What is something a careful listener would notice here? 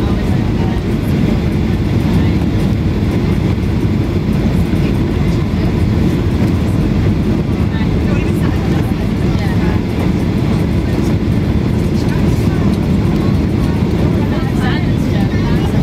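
A jet airliner's engines roar steadily, heard from inside the cabin.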